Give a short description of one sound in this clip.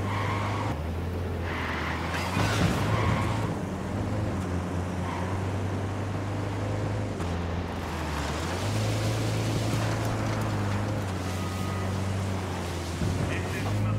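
A van engine hums steadily, rising and falling in pitch as it speeds up and slows down.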